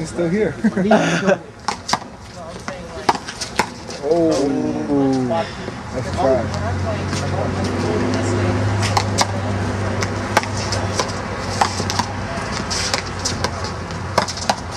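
A rubber ball smacks against a wall and the court floor.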